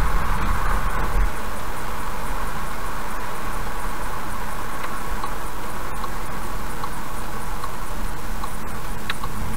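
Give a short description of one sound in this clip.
A car drives steadily along a highway, its tyres humming on the road.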